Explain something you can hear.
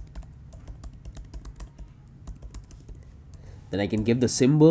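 Keys clatter softly on a keyboard.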